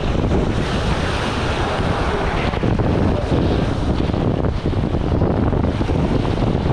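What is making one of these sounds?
Small waves wash onto the shore.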